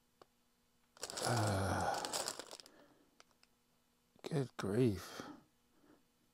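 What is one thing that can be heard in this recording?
A plastic packet crinkles as hands handle it.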